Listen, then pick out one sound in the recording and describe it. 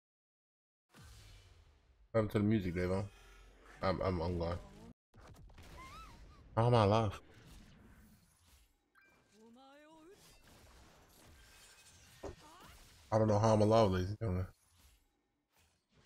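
Swords swish and clash in quick strikes.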